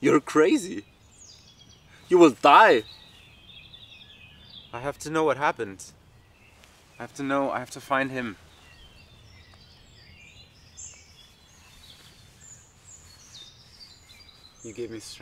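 A man speaks calmly nearby in short phrases.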